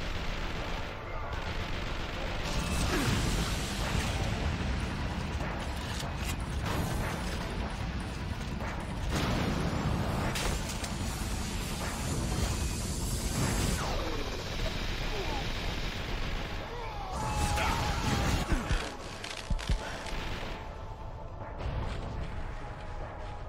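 Rifle gunfire rattles in bursts.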